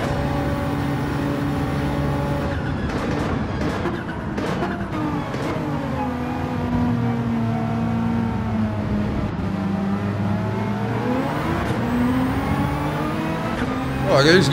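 A racing car engine roars at high revs, drops as the car brakes, then revs up again.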